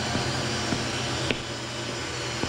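Footsteps sound on a hard floor.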